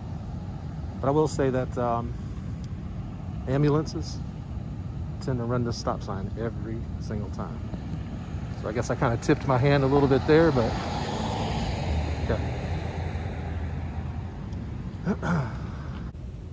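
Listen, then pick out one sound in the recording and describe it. A man speaks calmly and close by, his voice a little muffled.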